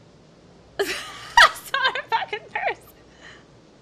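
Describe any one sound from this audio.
A young woman laughs and talks with animation into a close microphone.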